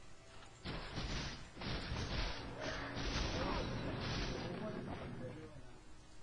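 Loud game spell effects whoosh and crackle in bursts.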